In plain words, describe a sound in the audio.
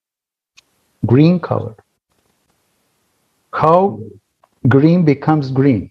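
A middle-aged man speaks calmly in bursts over an online call.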